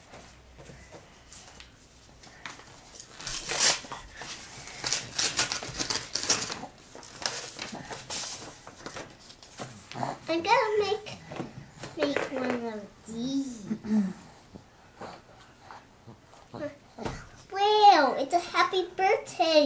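A toddler babbles nearby.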